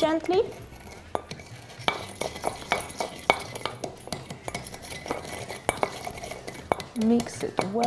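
A bar spoon clinks against ice in a glass as a drink is stirred.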